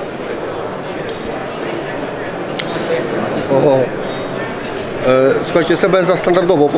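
A crowd murmurs in the background of a large hall.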